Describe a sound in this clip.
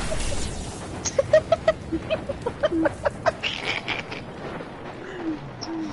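Energy weapons fire in rapid, sharp bursts.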